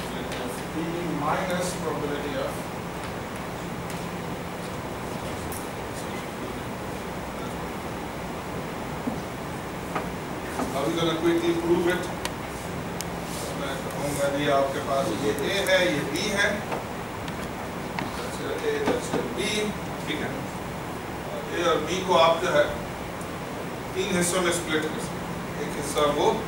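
A man lectures calmly in a room, heard from a distance.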